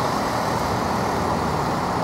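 A van drives slowly past.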